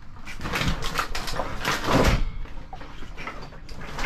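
Plastic buckets and tools clatter and knock.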